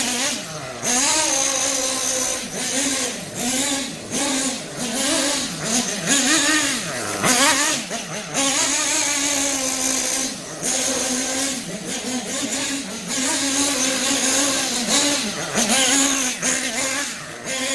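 A nitro-powered radio-controlled truck engine buzzes, revving up and easing off as the truck drives.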